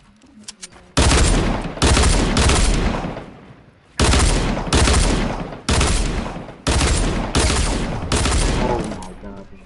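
A shotgun fires loud blasts in slow succession.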